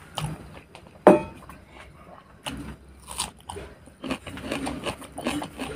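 A man crunches a piece of raw onion.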